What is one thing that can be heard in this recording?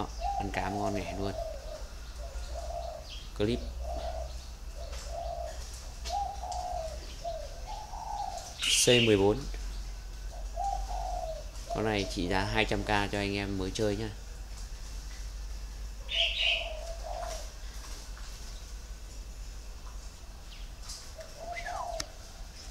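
A small bird chirps in short, repeated calls close by.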